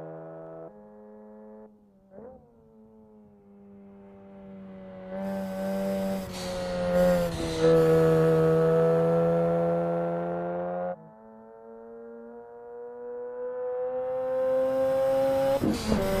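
A car engine hums and revs, rising in pitch as it speeds up and dropping as the gears change.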